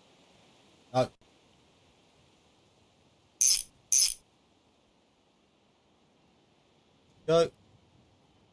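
A wrench clicks sharply as it tightens a bolt.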